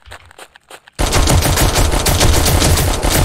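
A gun fires in a rapid, loud burst.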